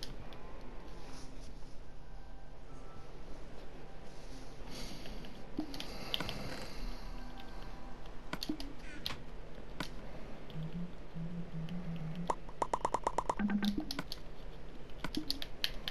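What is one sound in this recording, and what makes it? Short soft clicks sound.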